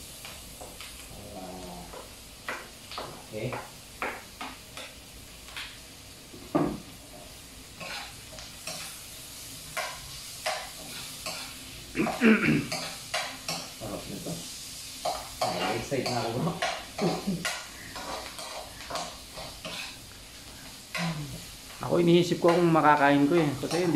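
A spatula scrapes and clinks against a frying pan.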